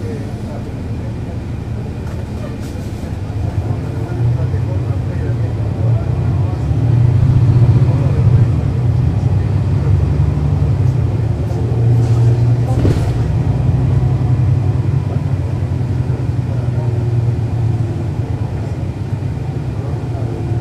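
A bus engine idles with a low, steady rumble close by.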